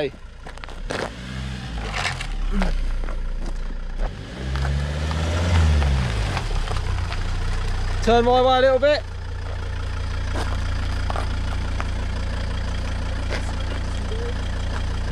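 A car engine rumbles close by as a car rolls slowly past.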